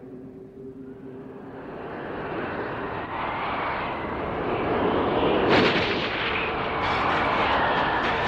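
A strong wind howls and grows louder.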